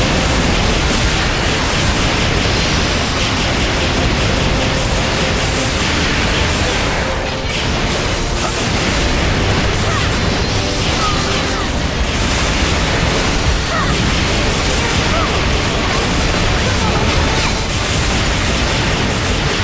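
Gunfire and energy blasts crack and boom in a game battle.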